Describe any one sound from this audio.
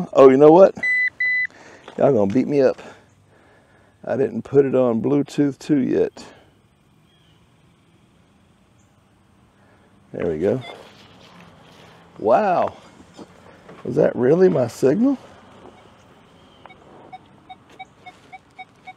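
A metal detector beeps.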